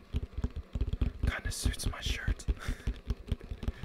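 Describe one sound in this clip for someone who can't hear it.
A young man laughs softly close to the microphone.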